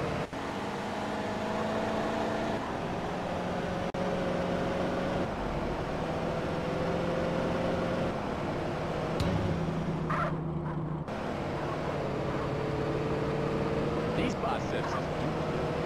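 A car engine hums steadily, its pitch shifting now and then.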